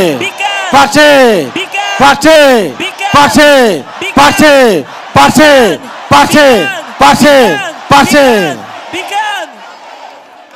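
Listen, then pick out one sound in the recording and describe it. A man shouts forcefully in rhythmic bursts through loudspeakers.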